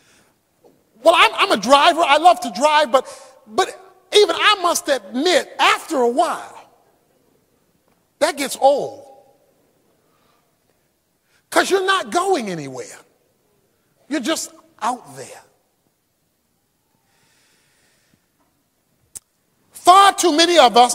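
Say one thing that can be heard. A man speaks with animation, preaching with pauses.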